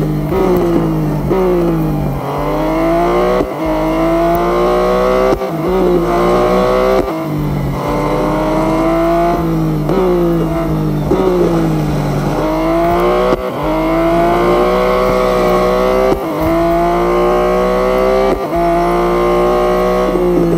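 A racing car engine roars, its pitch climbing as it speeds up and dropping with each gear change.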